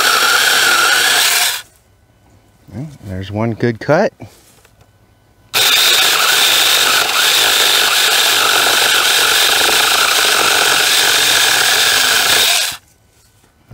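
A small electric chainsaw whines steadily as it cuts through a log.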